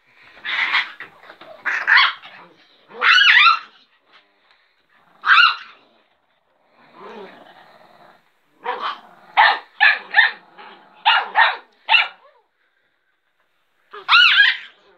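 A small dog barks and yaps sharply in short bursts.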